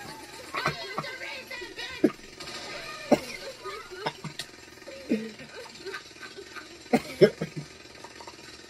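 A young man laughs loudly and heartily close by.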